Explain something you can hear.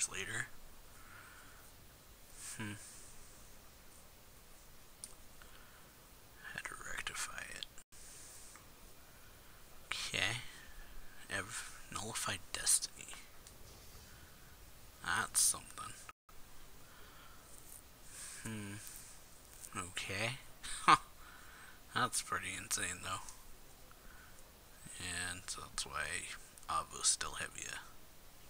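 A young man talks close to a microphone, in bursts with pauses.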